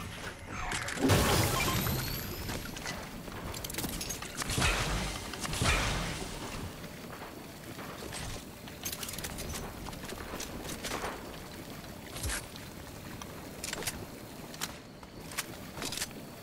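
A shimmering energy effect crackles and whooshes.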